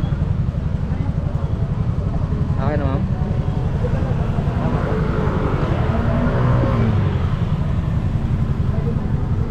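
A motorbike engine putters steadily close by.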